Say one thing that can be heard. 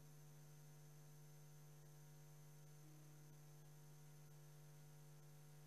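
Electronic keyboards play sustained chords.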